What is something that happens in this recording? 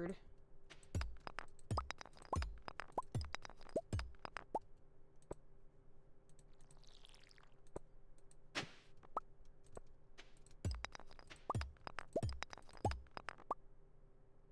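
A hoe thuds into soft ground again and again.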